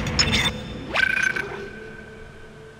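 An electronic menu tone chimes.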